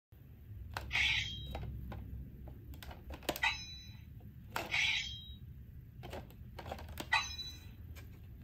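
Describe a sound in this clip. Plastic parts click and rattle as a toy sword's guard is slid back and forth.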